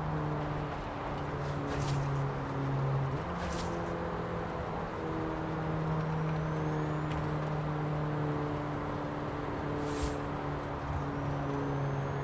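A car engine hums steadily at speed, shifting pitch as it slows.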